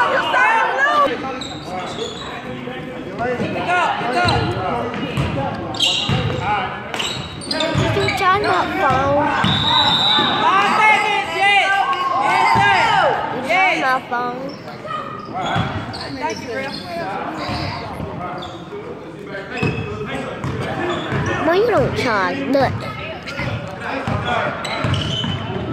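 Sneakers squeak on a hardwood floor in a large echoing gym.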